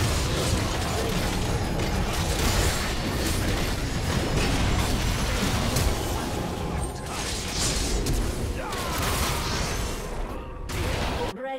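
Magic blasts and weapon hits crackle and boom in a fast, busy fight.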